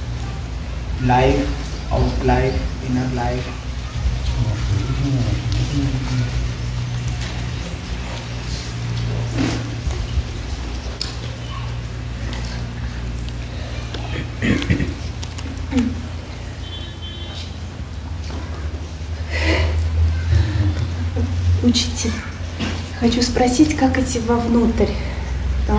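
An elderly man speaks calmly and slowly, close by, with pauses.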